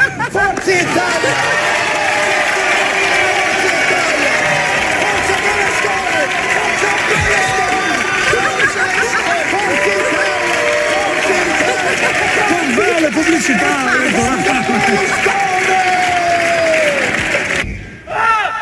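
A crowd of children shouts and cheers.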